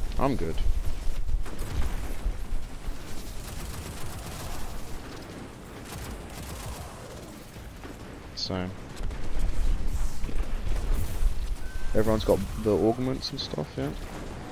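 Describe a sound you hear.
Guns fire in rapid bursts with heavy thumps.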